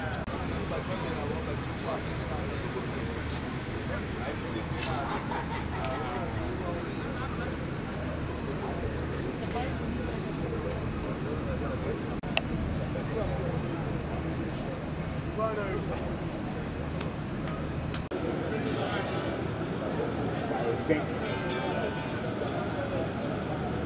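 A crowd of men and women murmur and talk nearby.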